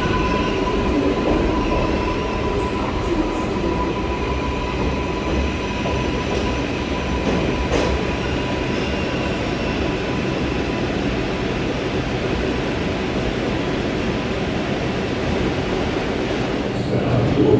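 A subway train rumbles and rattles as it pulls out of a station.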